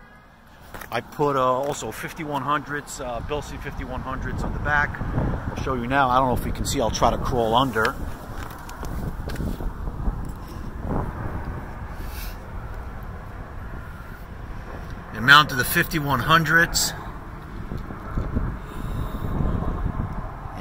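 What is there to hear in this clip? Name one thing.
Wind rumbles against a close microphone outdoors.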